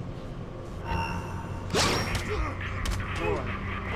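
A punch lands with a heavy thud during a struggle.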